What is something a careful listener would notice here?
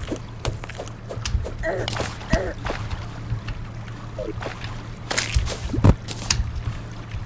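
Short digging thuds from a video game repeat in quick succession.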